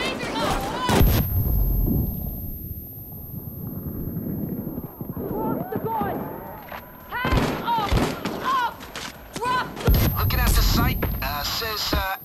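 A loud blast booms, followed by a high ringing tone.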